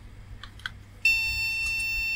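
A multimeter beeps with a steady high tone.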